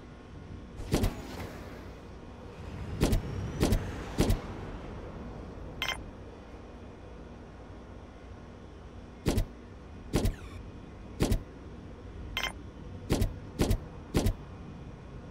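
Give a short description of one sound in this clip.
Short, sharp clicks sound again and again as items are placed in a game.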